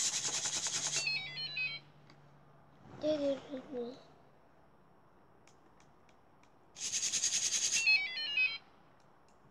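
A small robot gives quick electronic beeps.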